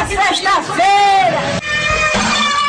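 A woman shouts loudly in celebration, heard close by.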